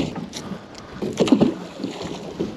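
A heavy object splashes into water.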